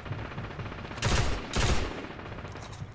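A rifle fires loud shots in quick bursts.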